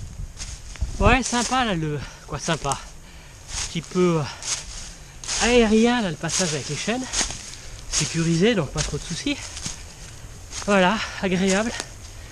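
A man speaks close by, slightly out of breath.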